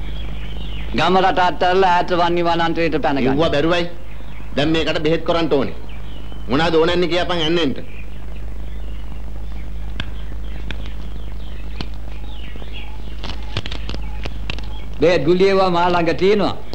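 A man speaks loudly and with animation, close by.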